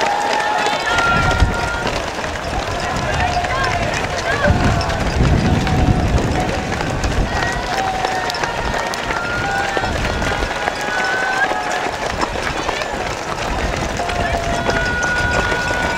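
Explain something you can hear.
A crowd of spectators cheers and shouts nearby outdoors.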